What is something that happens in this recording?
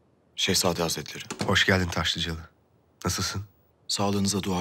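A second man greets calmly nearby.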